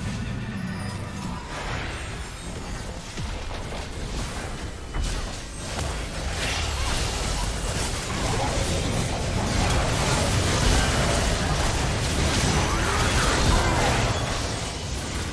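Game spells burst and crackle in a busy battle.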